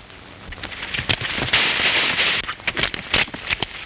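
A horse pushes through brush with rustling branches.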